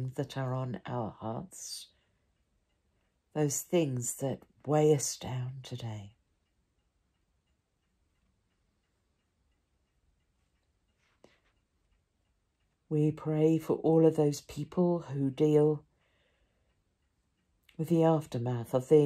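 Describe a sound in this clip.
An elderly woman speaks calmly and close by, with long pauses.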